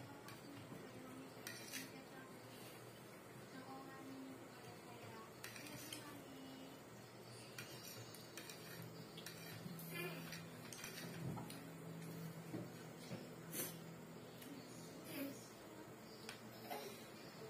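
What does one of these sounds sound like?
Metal cutlery clinks and scrapes against a plate.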